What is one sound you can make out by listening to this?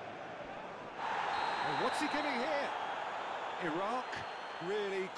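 A stadium crowd suddenly roars and cheers.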